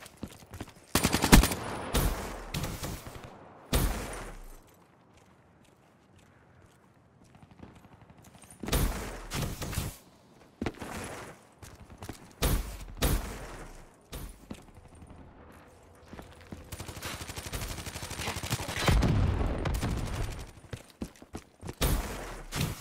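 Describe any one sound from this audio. An automatic rifle fires in short bursts.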